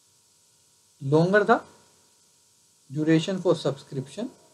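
A man speaks calmly and clearly into a close microphone, in short phrases with pauses.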